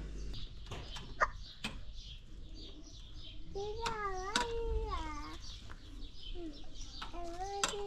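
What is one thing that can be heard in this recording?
Metal skewers clink as they are laid on a grill.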